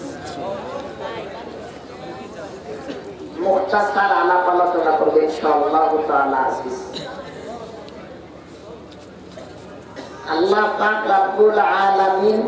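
A man preaches into a microphone over a loudspeaker, his voice rising into a loud, drawn-out chant.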